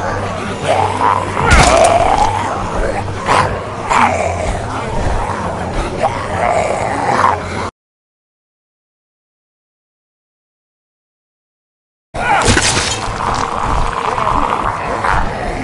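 A monster snarls and growls up close.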